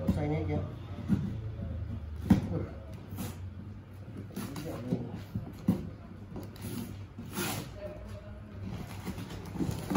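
A knife scrapes and cuts through cardboard.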